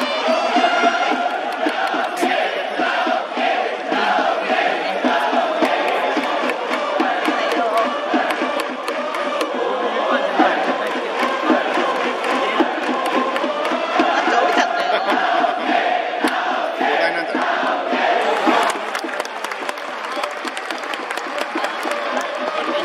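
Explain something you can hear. A large crowd claps in a quick, steady rhythm.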